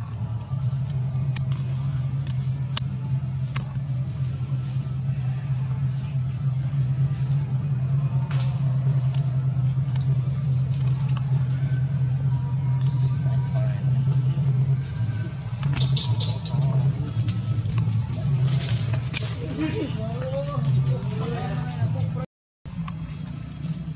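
Dry leaves rustle under a small monkey's feet.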